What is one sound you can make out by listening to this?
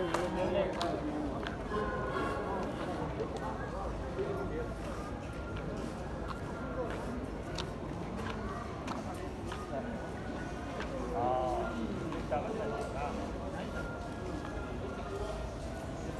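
Several men talk casually at a distance outdoors.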